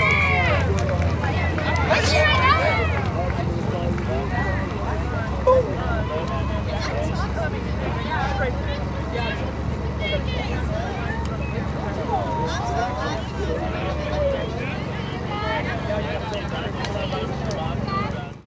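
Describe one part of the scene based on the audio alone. A crowd of young women shout and call out across an open field.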